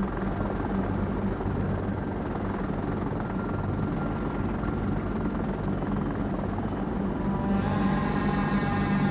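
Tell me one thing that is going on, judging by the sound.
Propeller aircraft engines drone steadily overhead.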